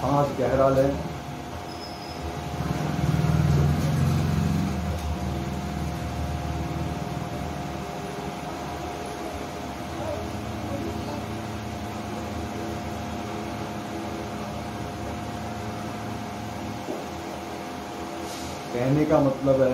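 A man hums a long, steady low note.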